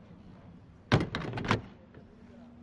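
A van door slams shut.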